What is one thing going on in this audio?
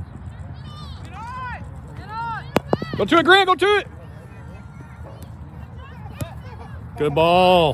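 Young players shout loudly across the field.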